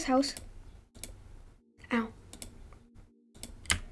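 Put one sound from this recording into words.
A lock clicks as it is picked.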